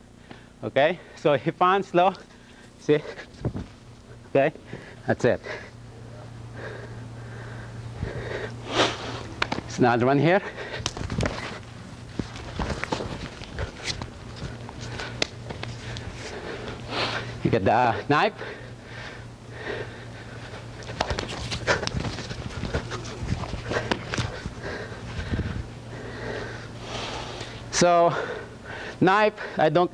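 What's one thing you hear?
A man speaks loudly and with animation in a large echoing room.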